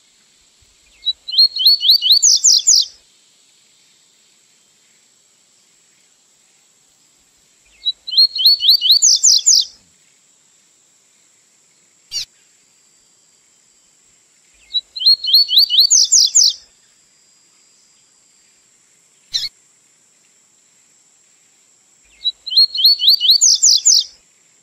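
A small bird sings a fast, bright trilling song in repeated bursts.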